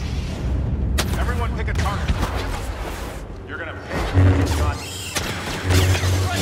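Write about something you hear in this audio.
Blaster bolts fire and hit with sharp zaps.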